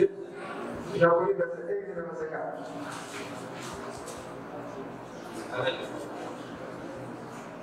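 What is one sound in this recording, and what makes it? A young man speaks with animation into a microphone, in an echoing room.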